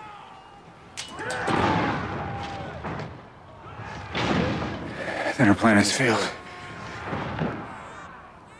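A young man speaks urgently nearby.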